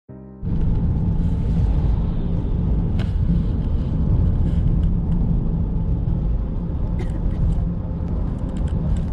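A car engine rumbles steadily from inside the car, with road noise.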